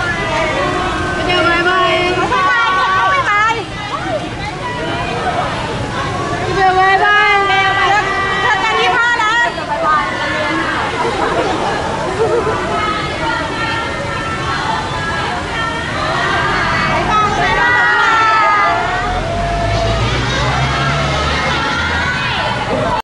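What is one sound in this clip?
Young women shout and squeal excitedly close by.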